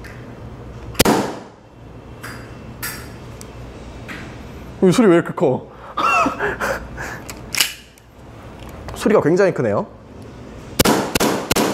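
A pistol's slide clacks sharply as it is racked.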